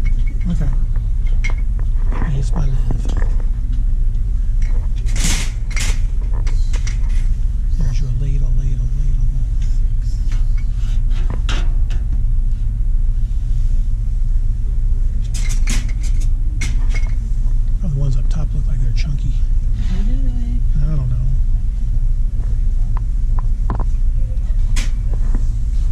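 Glass jars clink on a metal shelf.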